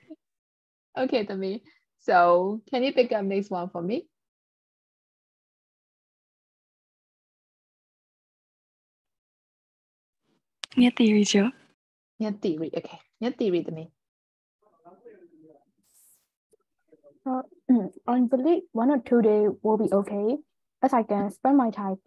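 A young woman talks calmly, heard through an online call.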